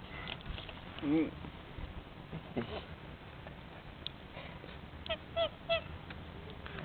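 A goose honks nearby.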